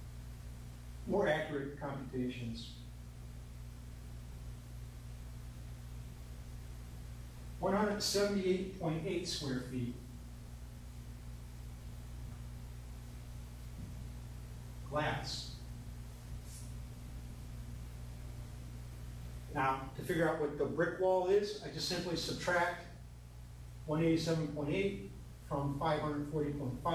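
A middle-aged man speaks calmly in short bursts, close by.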